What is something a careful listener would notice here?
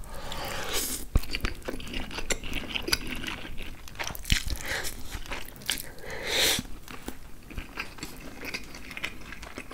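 A man chews wetly up close.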